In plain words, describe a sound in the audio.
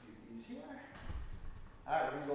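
A kettlebell is set down on the floor with a thud.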